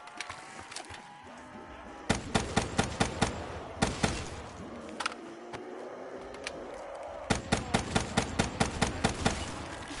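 Zombies growl and groan nearby.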